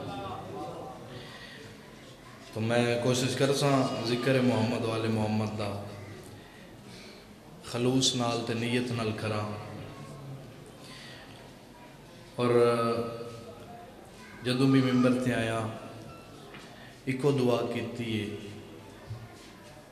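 A young man recites passionately into a microphone, heard through loudspeakers with echo, in bursts with pauses.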